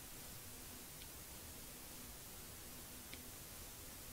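A stylus taps faintly on a tablet.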